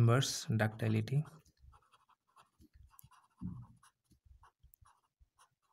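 A pen scratches across paper as it writes.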